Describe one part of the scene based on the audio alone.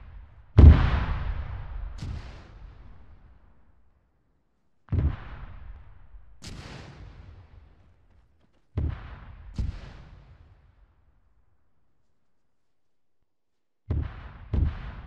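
Explosions boom and rumble, echoing off into the distance.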